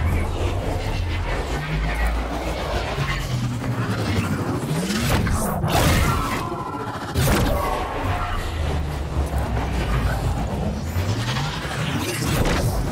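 Air rushes loudly past during a long fall.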